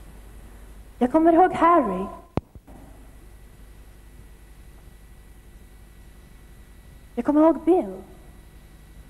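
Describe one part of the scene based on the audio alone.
A young woman sings into a microphone through loudspeakers in a large hall.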